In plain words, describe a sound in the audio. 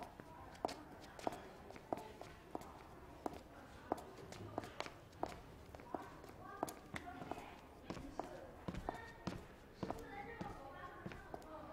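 High heels click steadily on a hard floor.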